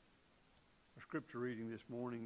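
A middle-aged man speaks slowly into a microphone in a large room.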